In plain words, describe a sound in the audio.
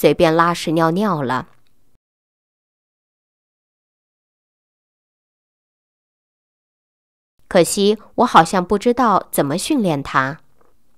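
A young woman speaks clearly and calmly into a close microphone.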